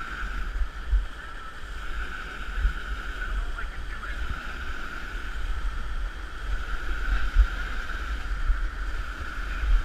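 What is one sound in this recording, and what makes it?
A hand scrapes and brushes against rock.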